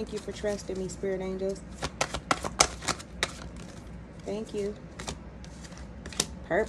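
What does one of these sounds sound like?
Playing cards slap and rustle as a deck is shuffled.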